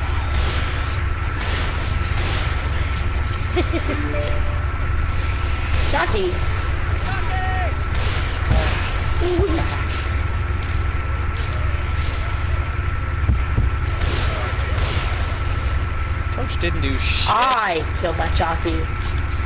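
A rifle fires repeated sharp shots.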